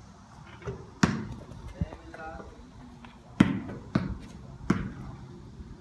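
A basketball bounces on concrete outdoors.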